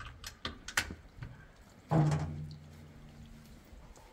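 A metal door rattles as it is pushed open.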